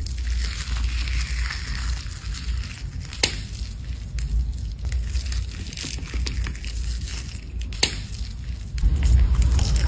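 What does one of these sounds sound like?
Soft putty squishes and squelches as fingers squeeze and press it.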